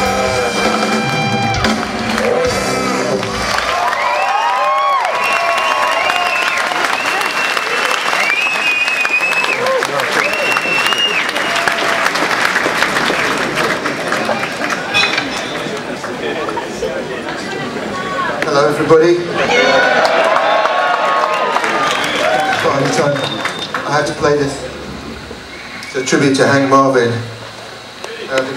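A live audience cheers and applauds in a large hall.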